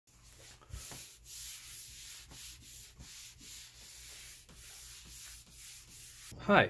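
A cloth rubs back and forth across a smooth surface in quick, even strokes.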